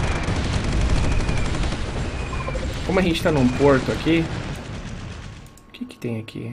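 Explosions rumble and boom in a battle.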